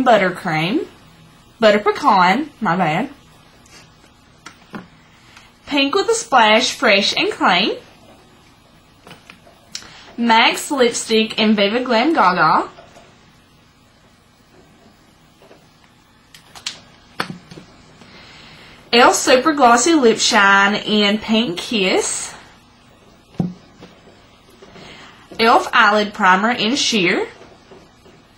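A young woman talks with animation close to the microphone, in short bursts.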